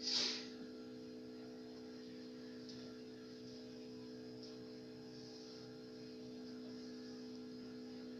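An electric guitar chord is struck and rings on through an amplifier.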